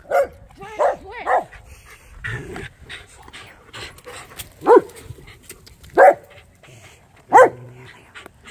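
A dog barks in short, sharp bursts.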